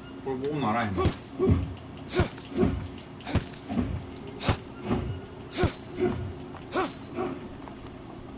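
A blade chops into wood with repeated sharp thwacks.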